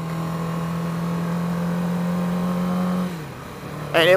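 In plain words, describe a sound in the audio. A motorcycle engine drones steadily at speed.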